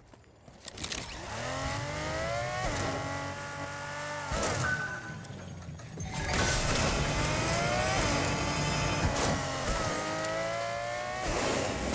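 A car engine revs and whines as it speeds up and slows down.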